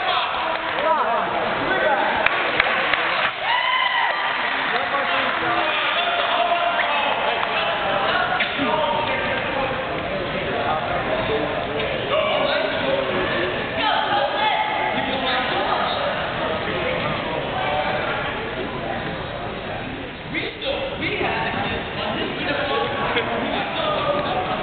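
A crowd of spectators talks and cheers throughout a large echoing gym.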